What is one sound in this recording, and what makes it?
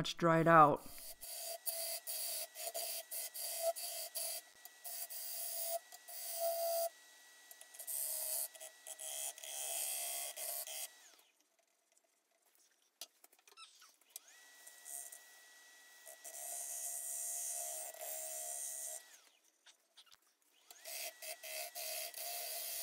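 A wood lathe hums and whines steadily.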